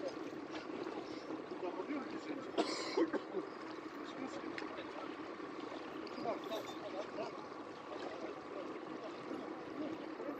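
Water splashes as a person swims.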